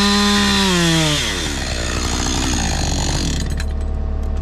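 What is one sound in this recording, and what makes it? A chainsaw revs loudly, then winds down.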